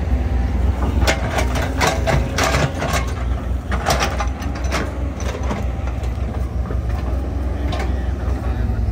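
Metal clanks and knocks sharply on heavy machinery.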